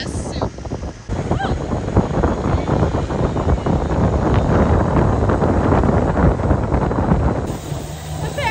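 Waves splash and spray crashes against a boat.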